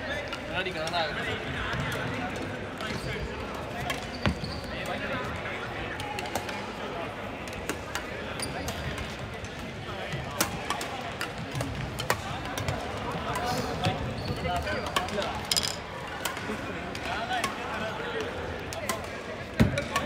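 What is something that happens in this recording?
Many players chatter and call out in the echoing hall.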